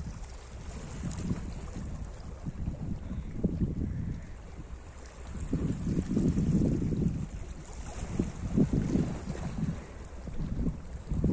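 Small waves lap and splash against rocks along the shore.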